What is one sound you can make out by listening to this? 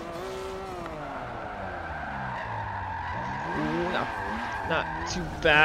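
Car tyres squeal while sliding through a turn.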